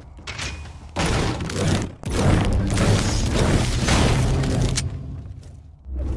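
A pickaxe strikes a wooden wall repeatedly.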